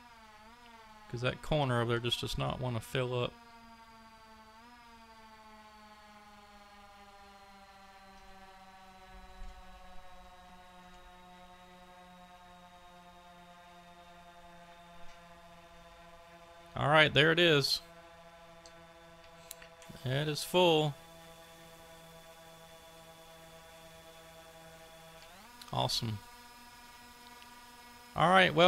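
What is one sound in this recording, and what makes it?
An engine hums steadily, its pitch slowly sinking and then rising near the end.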